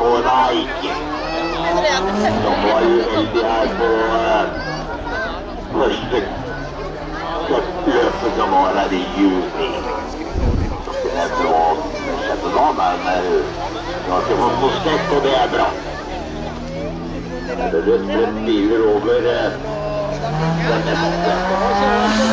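Racing car engines roar and rev up and down loudly.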